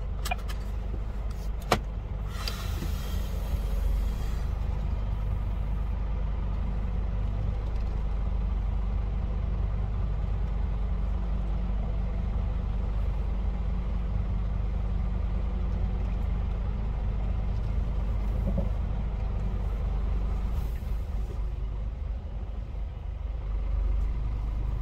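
A truck engine rumbles low and steady from inside the cab.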